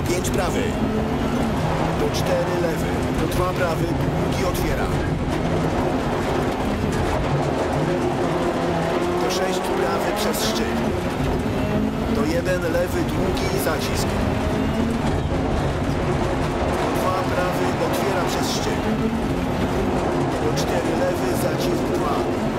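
Stones clatter against the underside of a car.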